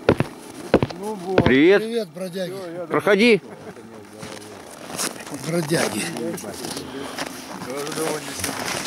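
An elderly man talks calmly close by, outdoors.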